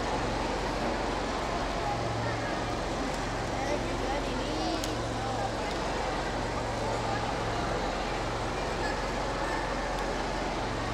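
A large crowd of men and women chatter all around in an echoing hall.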